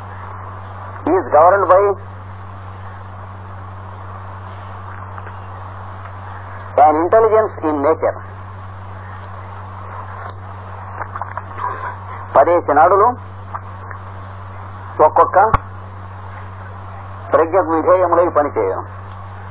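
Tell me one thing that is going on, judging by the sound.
A man speaks in short bursts with long pauses between them.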